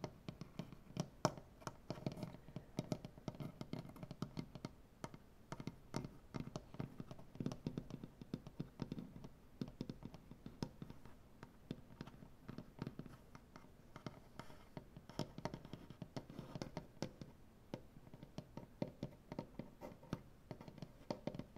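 Fingers tap and scratch softly on a wooden surface, close by.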